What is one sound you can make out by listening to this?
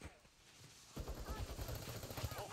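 Gunshots fire in a rapid burst.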